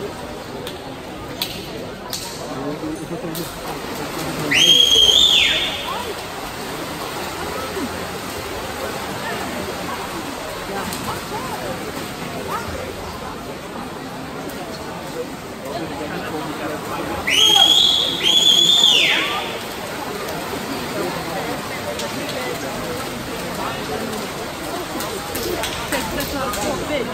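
A crowd cheers and shouts across an echoing hall.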